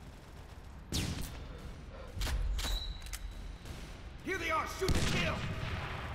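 A pistol fires single sharp shots that echo.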